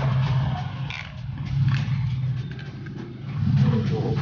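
Clothes hangers clack against a metal rail.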